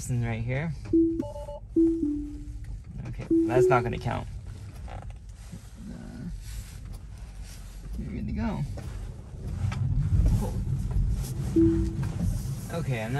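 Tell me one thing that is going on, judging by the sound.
A car gives short electronic chimes.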